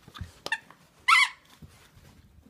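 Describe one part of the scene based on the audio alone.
A rubber toy squeaks sharply.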